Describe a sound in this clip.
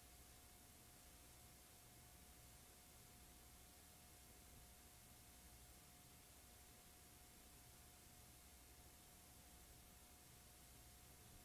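Static hisses steadily.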